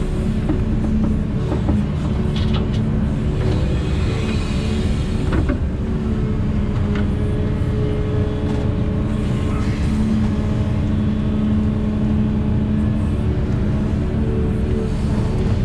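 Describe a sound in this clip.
Hydraulics whine as an excavator arm swings and lifts.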